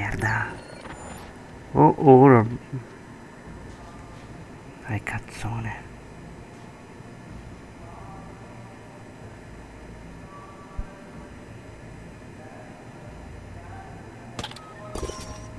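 Soft footsteps shuffle across a floor.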